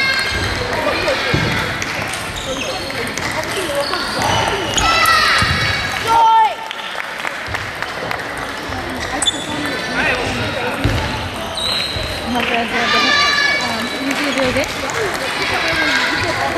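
A ping-pong ball clicks back and forth on paddles and a table.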